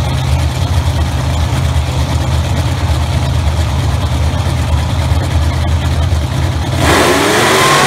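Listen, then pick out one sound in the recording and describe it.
A drag racing car engine idles with a deep, loping rumble.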